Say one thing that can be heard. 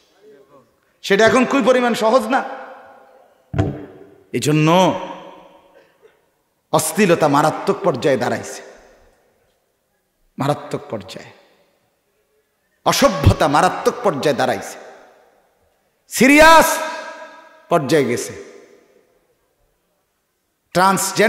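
A man preaches with passion into a microphone over a loudspeaker, in bursts with echoing pauses.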